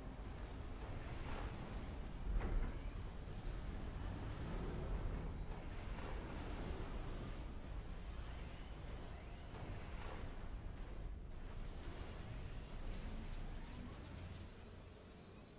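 Explosions thump and rumble during a battle.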